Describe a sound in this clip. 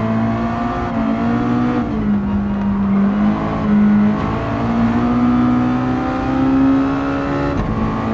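Tyres hum on the track.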